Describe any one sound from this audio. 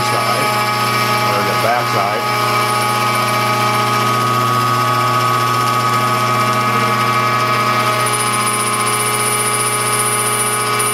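A milling cutter whines steadily as it cuts through metal.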